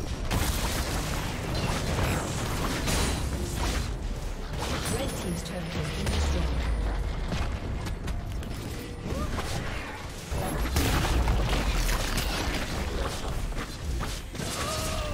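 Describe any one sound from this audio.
Fantasy battle effects crackle and boom as characters fight with spells.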